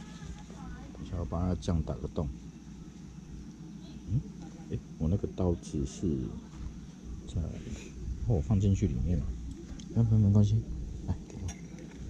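A man talks casually close by.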